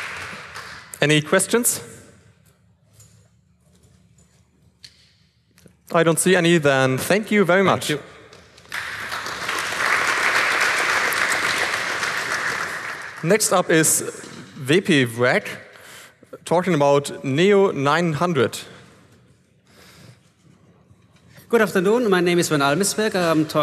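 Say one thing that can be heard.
A man speaks into a microphone, heard over loudspeakers in a large hall.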